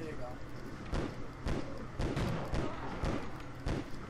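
Guns fire in quick bursts of sharp shots.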